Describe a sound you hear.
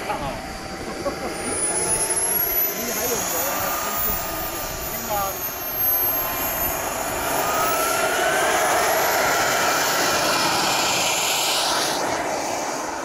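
A small jet engine whines loudly, its pitch rising and falling.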